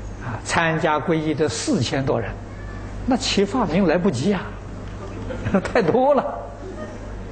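An elderly man speaks calmly and warmly into a close microphone.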